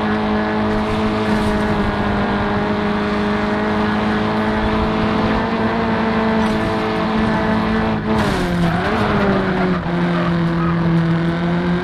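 A car engine roars steadily at high revs, then drops in pitch as the car slows.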